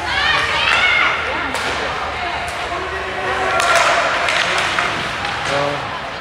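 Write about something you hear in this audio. Spectators shout and cheer nearby.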